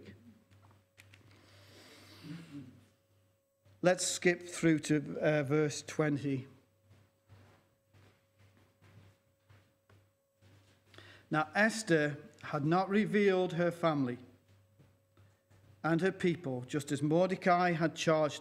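An older man speaks calmly through a microphone, with pauses between phrases.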